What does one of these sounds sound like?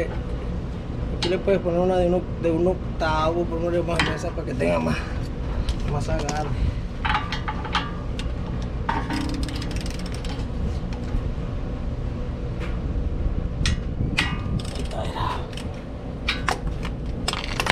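A metal wrench clicks and clanks against car parts.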